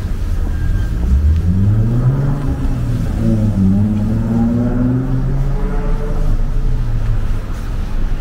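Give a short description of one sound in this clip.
A car engine revs up as the car passes by.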